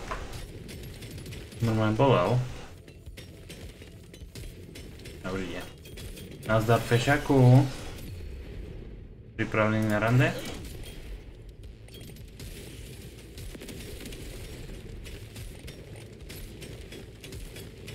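Gunfire from a video game rattles.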